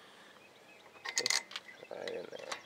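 Hands knock and rattle against metal car parts.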